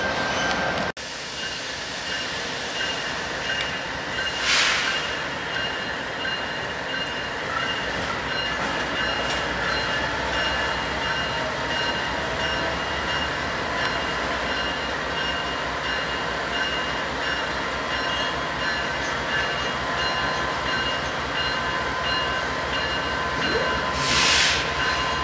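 A diesel locomotive rumbles steadily as it slowly approaches.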